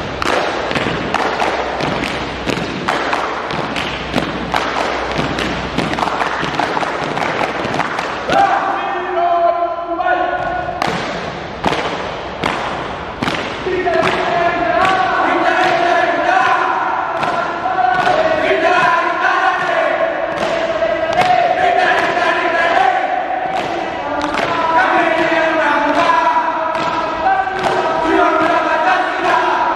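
Hands clap sharply in rhythm.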